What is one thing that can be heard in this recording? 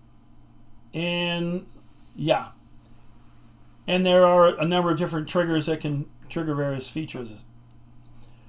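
An elderly man speaks calmly into a microphone, explaining.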